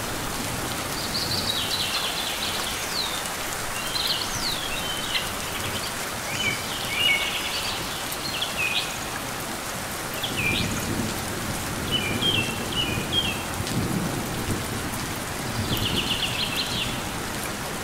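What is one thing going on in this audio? A small bird chirps in short, high twittering bursts.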